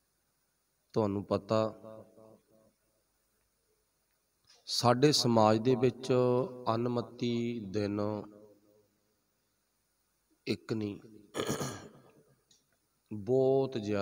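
A middle-aged man speaks calmly into a close microphone, with pauses.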